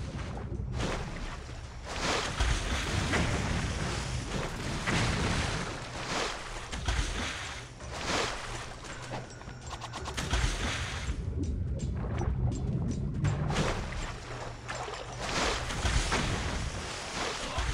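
Water splashes as a figure wades and dashes through it.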